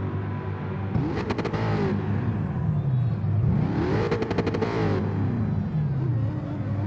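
A race car engine revs loudly, rising and falling.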